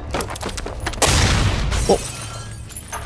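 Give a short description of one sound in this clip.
A body crashes heavily to the floor.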